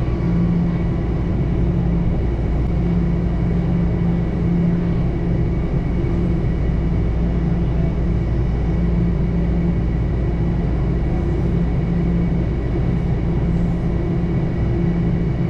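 A subway train rumbles and hums steadily as it runs along the track.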